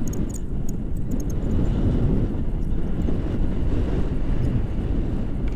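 Strong wind rushes and buffets against a microphone outdoors.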